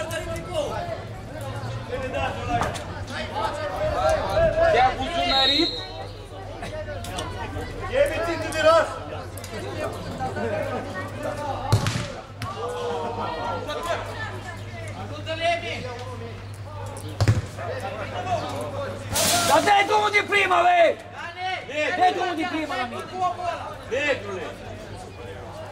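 Young men shout and call to each other nearby outdoors.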